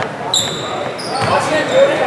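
A man coaching from the sideline shouts loudly.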